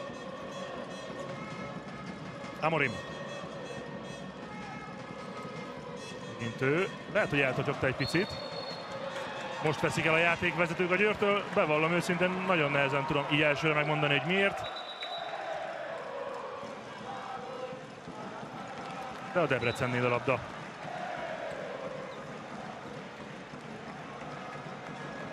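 A large crowd murmurs and cheers in a big echoing arena.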